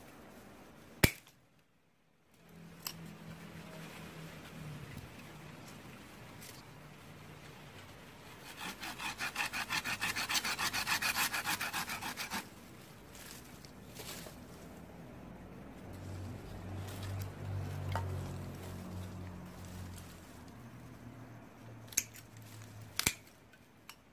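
Pruning shears snip through a woody branch.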